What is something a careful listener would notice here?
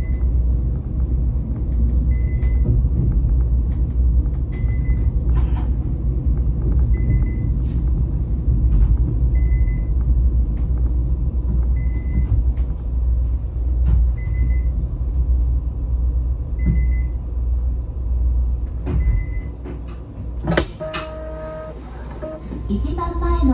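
A train rumbles steadily along the track, slowing down.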